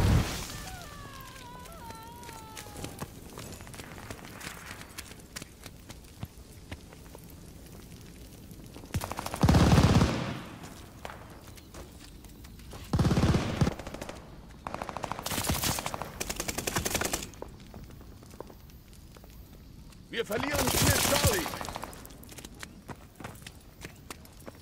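Footsteps crunch steadily over gravel and wooden floors.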